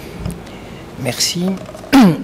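An elderly man begins speaking into a microphone.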